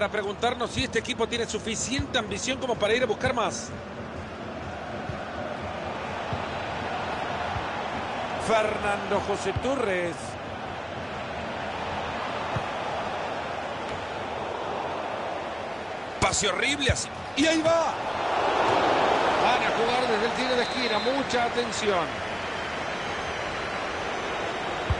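A large crowd cheers steadily in a stadium, swelling louder now and then.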